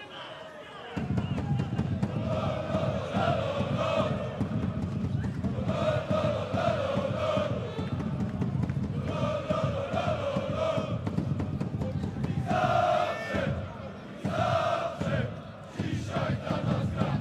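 A large crowd chants and roars loudly in an open stadium.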